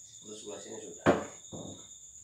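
A metal can knocks onto a hard surface.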